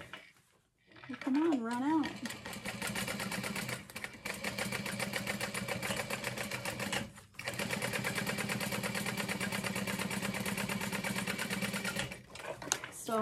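A sewing machine runs in a steady, fast stitching whir.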